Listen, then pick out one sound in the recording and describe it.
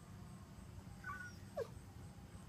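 A Siberian husky gives a short, high yelping whine.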